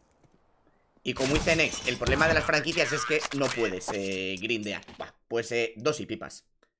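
A young man speaks with animation into a headset microphone.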